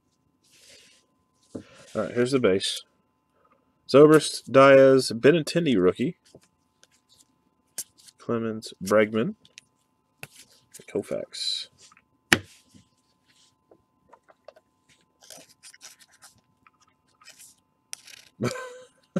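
Trading cards and plastic wrappers rustle and crinkle as they are handled.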